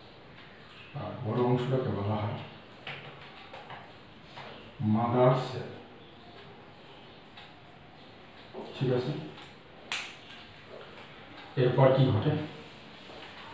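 A middle-aged man speaks calmly through a microphone, in short bursts with pauses.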